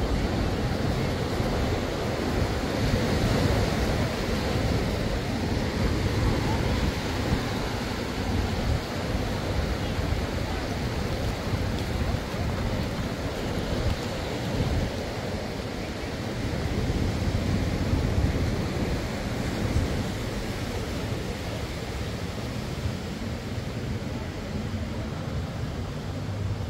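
Small waves wash onto a sandy shore.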